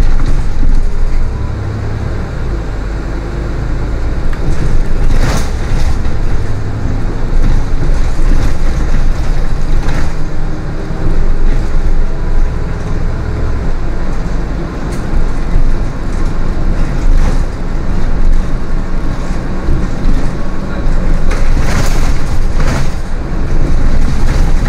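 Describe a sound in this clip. A bus engine drones steadily as the bus drives along a road.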